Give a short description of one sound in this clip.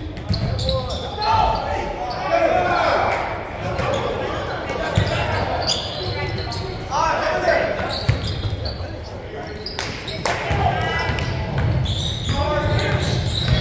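Men shout and call out across an echoing gym.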